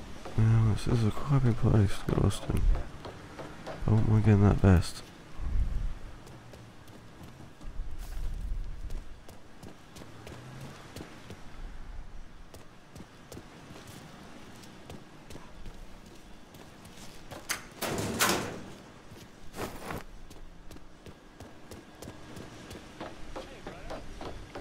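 Footsteps clank on metal stairs.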